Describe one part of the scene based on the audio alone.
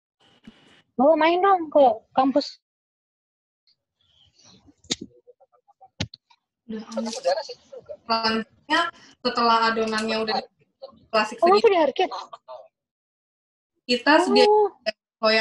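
A young woman explains calmly, close by.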